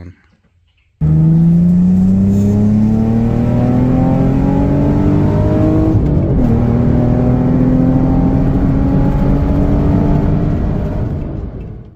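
A car engine roars loudly as the car accelerates, rising in pitch through the gears.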